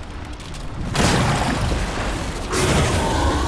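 Green fire crackles and roars in a burst.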